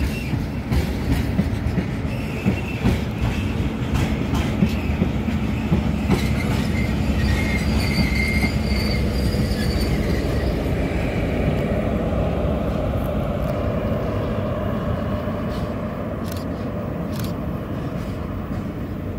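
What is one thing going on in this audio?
A freight train rumbles and clanks along the rails close by.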